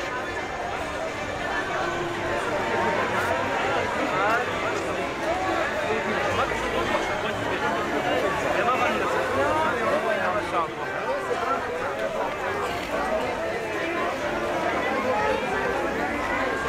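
A dense crowd of men and women chatters all around, close by.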